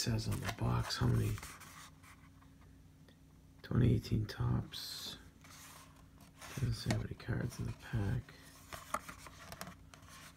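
A cardboard box is handled and rubbed.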